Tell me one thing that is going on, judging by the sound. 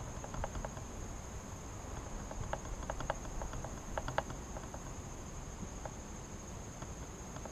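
Wind rustles through low shrubs outdoors.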